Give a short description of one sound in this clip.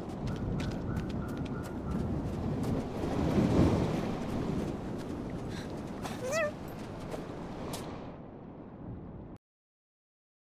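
Gentle waves lap against a sandy shore.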